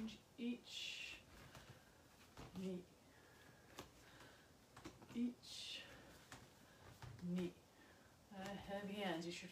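Bare feet thump and shuffle on a wooden floor.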